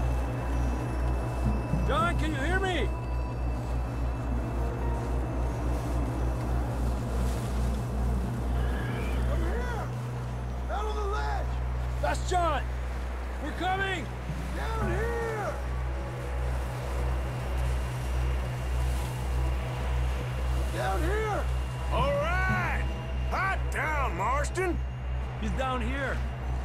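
Footsteps crunch quickly through deep snow.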